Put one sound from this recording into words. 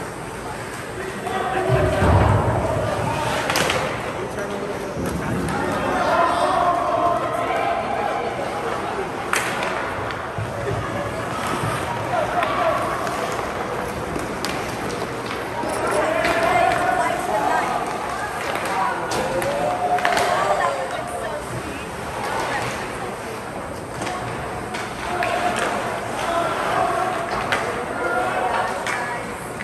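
Spectators shout and call out in a large echoing rink.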